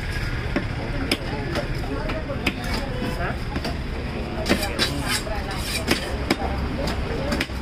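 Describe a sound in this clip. A blade scrapes scales off a fish.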